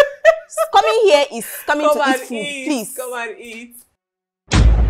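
A young woman speaks with animation close by.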